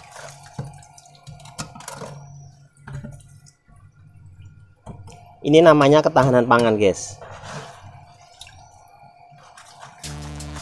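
Water splashes and sloshes as a plastic scoop dips into a tub of wriggling fish.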